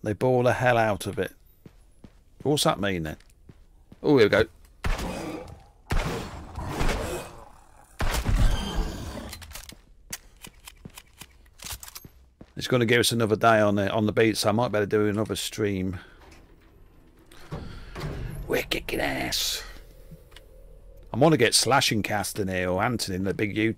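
An older man talks with animation close to a microphone.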